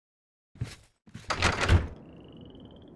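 A heavy wooden door opens and thuds shut.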